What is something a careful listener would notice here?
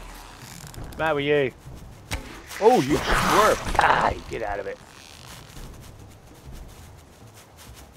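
A bowstring creaks as it is drawn back.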